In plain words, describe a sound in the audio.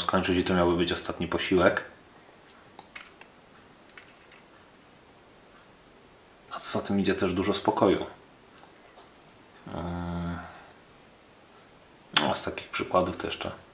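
A man speaks calmly close to the microphone, in short bursts with pauses.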